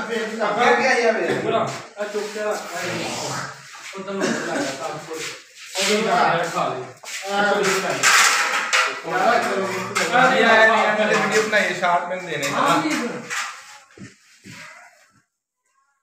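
Several young men talk loudly and with animation close by.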